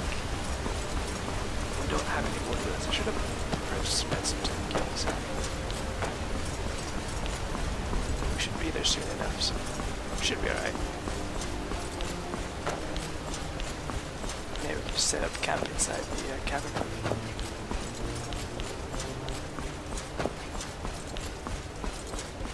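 Footsteps crunch steadily on a stone path.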